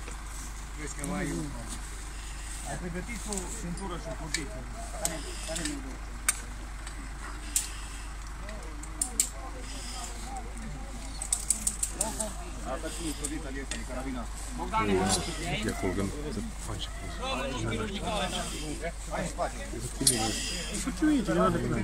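Several men talk nearby outdoors, calling to one another.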